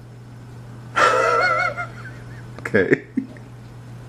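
A young woman laughs.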